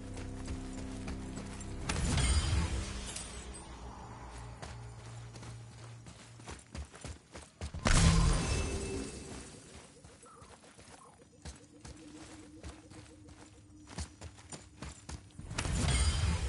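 Heavy footsteps run across stone.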